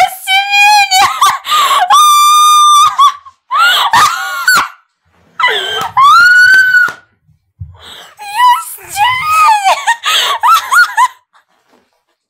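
A young woman squeals and laughs loudly close to a microphone.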